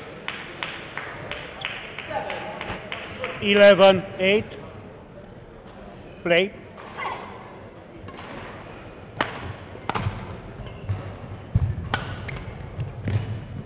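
Badminton rackets strike a shuttlecock in sharp pops.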